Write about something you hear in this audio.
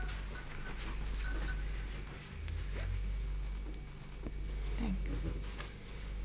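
Fabric rustles as it is handled.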